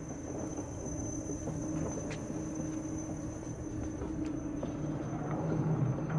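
A low mechanical hum drones steadily.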